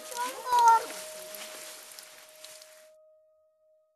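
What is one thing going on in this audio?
Footsteps rustle through dry fallen leaves outdoors.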